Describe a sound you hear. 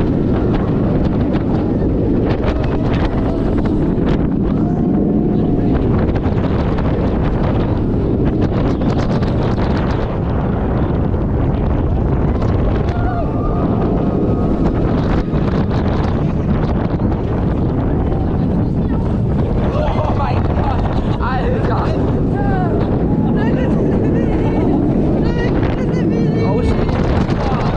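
A roller coaster train rumbles and clatters along its track.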